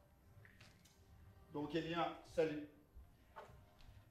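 Footsteps thud on a stage floor.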